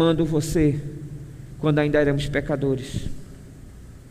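A man speaks with feeling into a microphone.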